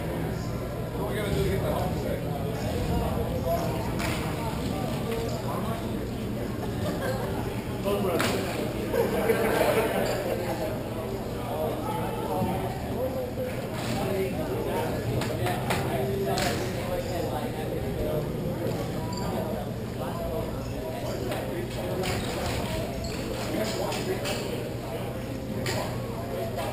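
Skates and sticks scrape and clatter on a hard rink floor, echoing in a large hall.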